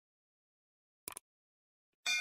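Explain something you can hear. A mouse button clicks.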